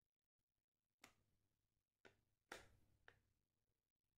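A soap bubble pops with a soft crackle.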